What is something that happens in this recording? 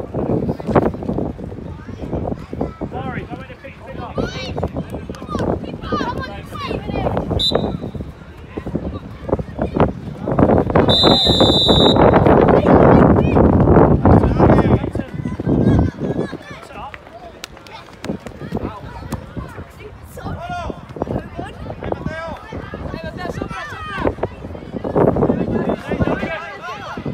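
Children shout and call out in the open air.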